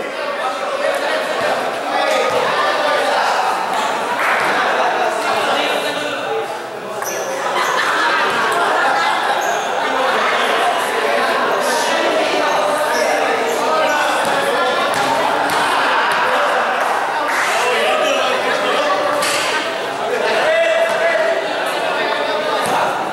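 A crowd of spectators chatters and shouts throughout in an echoing covered court.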